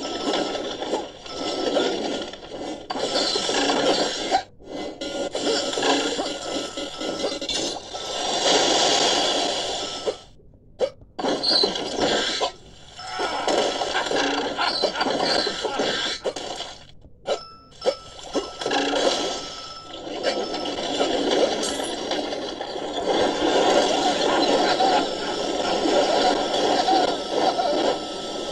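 Upbeat game music and effects play from a small phone speaker.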